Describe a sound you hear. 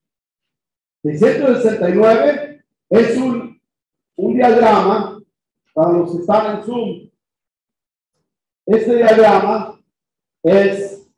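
A man speaks calmly in short bursts.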